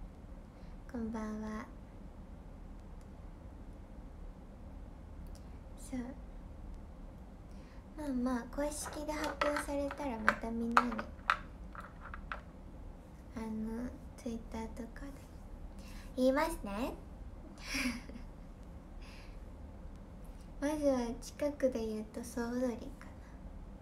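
A young woman talks calmly and close up, with pauses.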